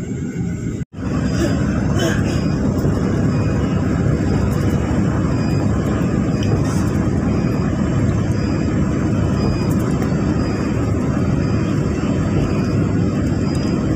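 Tyres roar loudly on a fast road.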